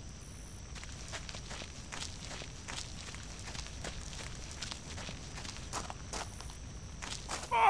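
Footsteps crunch through dry grass at a steady walking pace.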